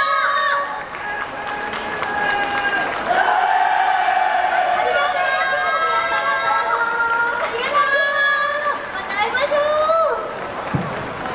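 Several young women sing and call out together through loudspeakers.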